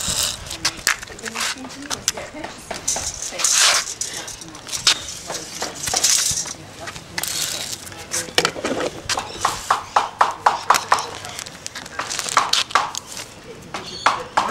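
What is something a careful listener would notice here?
A small plastic toy skateboard clacks and taps on wooden blocks and concrete.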